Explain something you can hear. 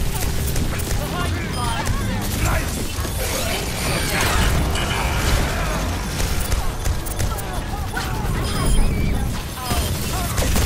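Rapid gunfire crackles and thuds.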